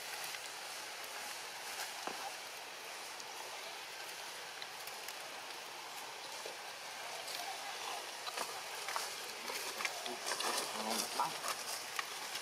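Dry leaves crackle as a baby monkey moves over the ground.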